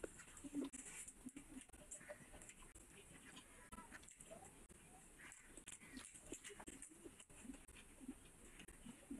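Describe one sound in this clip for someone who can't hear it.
Fingers squish and mix wet food on a plate.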